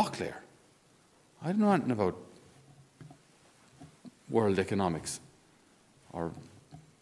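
A man speaks slowly and calmly into a microphone, with short pauses, in a slightly echoing room.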